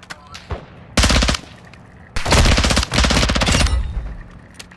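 A rifle fires rapid bursts of shots up close.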